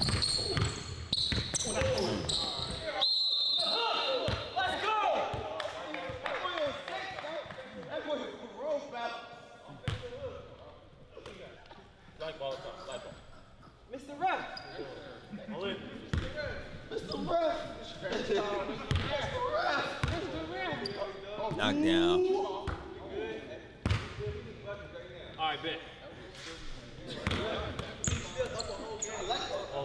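A basketball bounces on a hard court floor in a large echoing hall.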